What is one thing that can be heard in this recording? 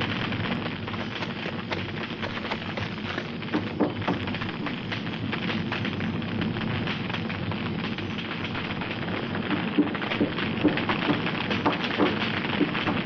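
A large fire roars and crackles loudly.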